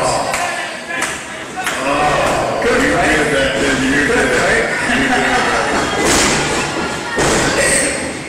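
Bodies and feet thump on a wrestling ring's canvas.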